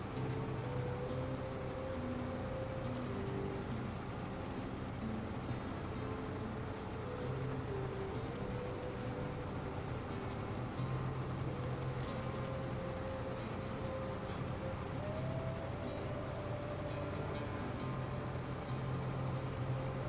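Tyres crunch over snow and rock.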